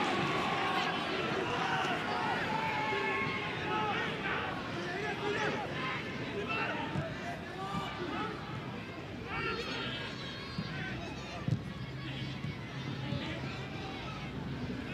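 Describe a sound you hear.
A large stadium crowd chants and cheers throughout.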